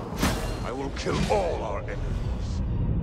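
A fiery magical blast whooshes and crackles.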